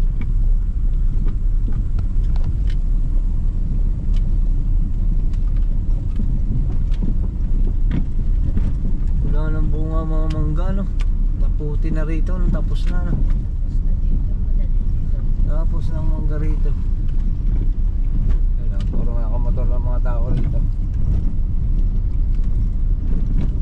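Tyres crunch and rumble over a dirt road.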